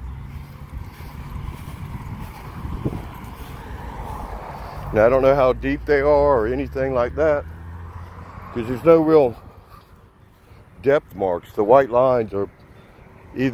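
Footsteps swish through dry grass.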